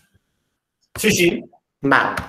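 A man speaks over an online call.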